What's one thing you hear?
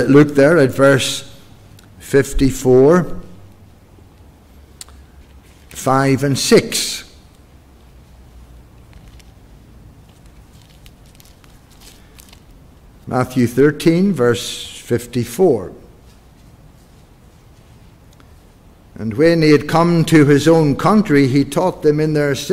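An older man speaks slowly and calmly into a microphone, with pauses, in an echoing room.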